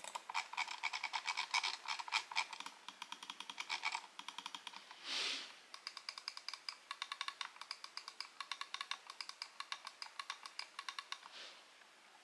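A computer mouse clicks rapidly and repeatedly, close by.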